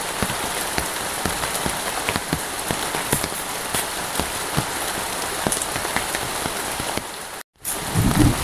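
A river rushes by.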